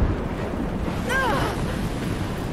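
A young woman cries out in pain.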